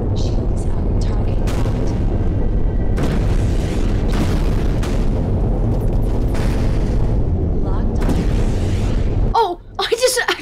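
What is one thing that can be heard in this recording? Guns fire in bursts.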